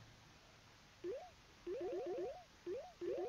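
Short rising electronic blips chirp in quick bursts.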